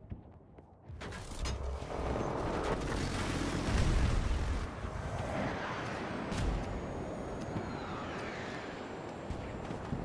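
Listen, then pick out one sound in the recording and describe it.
Wind rushes loudly past a parachutist.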